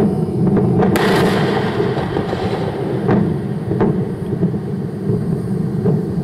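A huge fireball roars with a deep, steady rumble.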